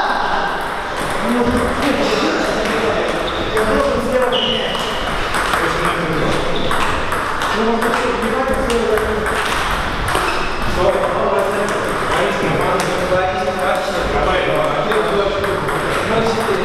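Table tennis balls click and bounce off paddles and tables in a large echoing hall.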